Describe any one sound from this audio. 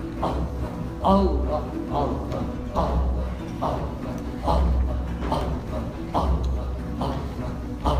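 A hand drum beats a steady rhythm close by.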